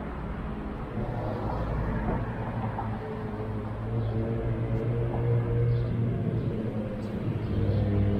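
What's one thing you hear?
A car drives past on a street outdoors.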